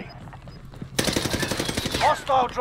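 A machine gun fires a rapid burst.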